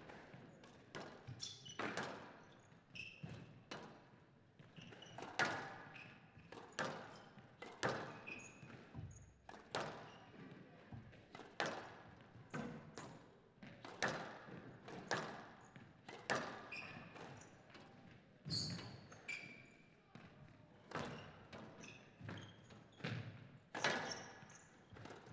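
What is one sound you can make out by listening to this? A squash ball smacks hard against the walls in a fast rally, echoing in a large hall.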